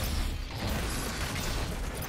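A heavy gun fires with loud blasts.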